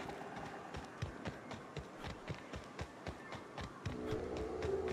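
Footsteps tread quickly and evenly on hard ground.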